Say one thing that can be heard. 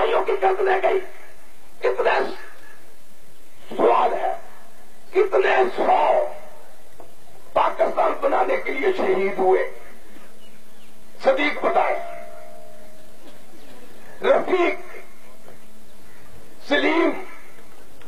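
A man makes a speech forcefully through a microphone and loudspeakers, in short bursts with pauses.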